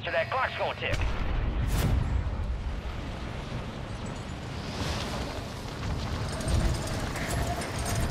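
Wind rushes past during a fast fall through the air.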